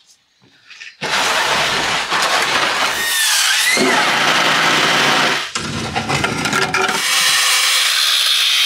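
A power saw cuts loudly through wood.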